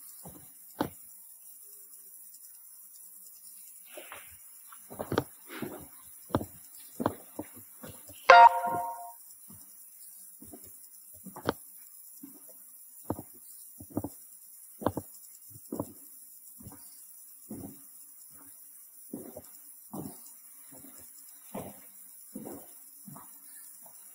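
Footsteps crunch on a gritty floor in an echoing tunnel.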